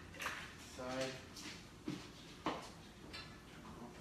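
Kitchen items clatter and knock on a counter.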